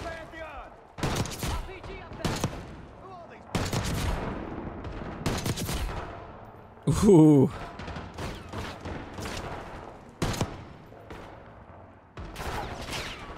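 Sniper rifle shots crack loudly, one after another.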